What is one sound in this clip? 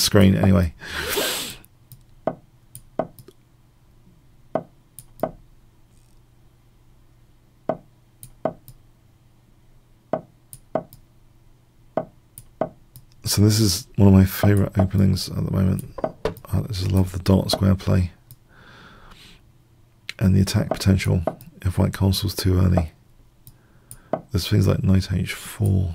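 A middle-aged man talks with animation, close to a microphone.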